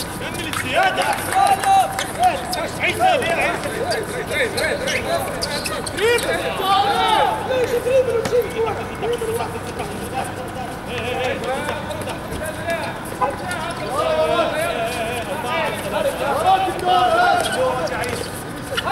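Young men shout and call out across an open outdoor court.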